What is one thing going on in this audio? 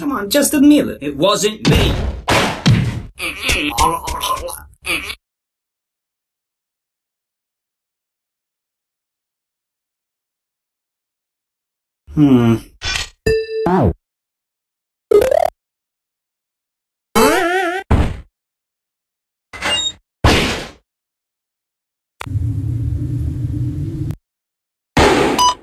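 Cartoon sound effects play in short bursts, with pauses of silence.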